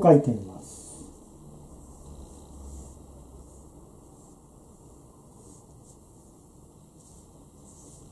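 A brush softly sweeps across paper.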